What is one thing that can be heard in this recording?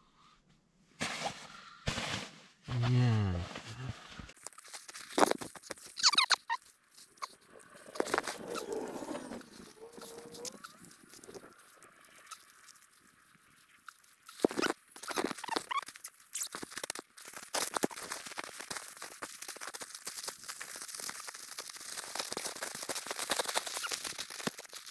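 Nylon tent fabric rustles and crinkles as someone moves about close by.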